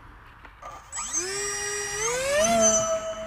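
An electric motor whines and rises in pitch as it spins up.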